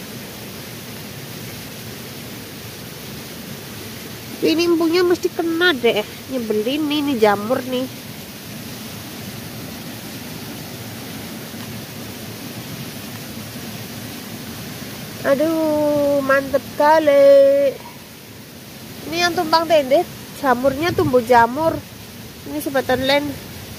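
A hand pulls mushrooms from the soil with a soft snap.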